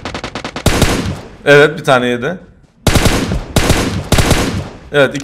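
Rapid gunshots crack in bursts.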